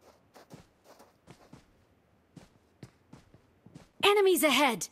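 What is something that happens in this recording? Footsteps tread steadily on the ground.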